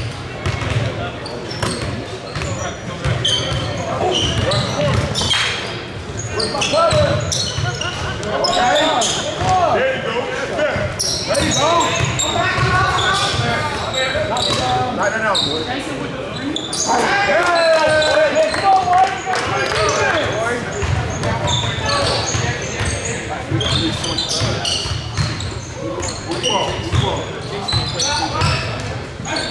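A crowd of spectators chatters and calls out in the echoing hall.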